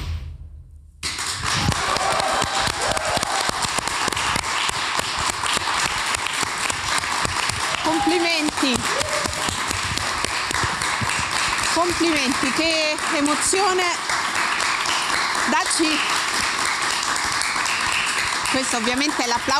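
Hands clap in loud applause.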